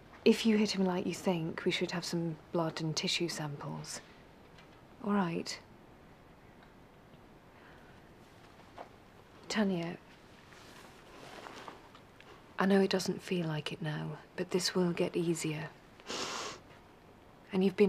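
A young woman speaks quietly and with emotion, close by.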